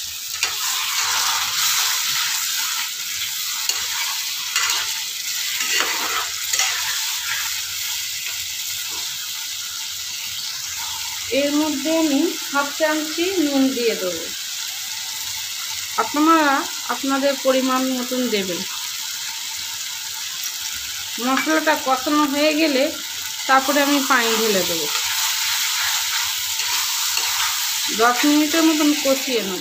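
Food sizzles and bubbles steadily in a hot pan.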